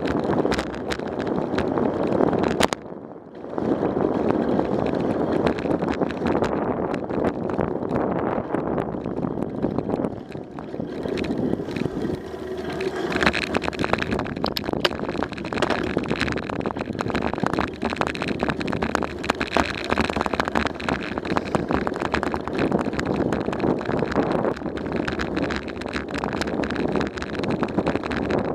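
Wind rushes loudly past a moving bike, outdoors.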